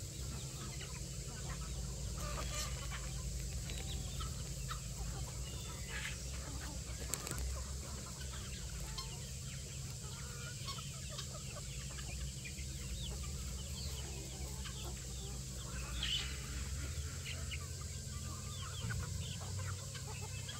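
A large flock of chickens clucks softly nearby.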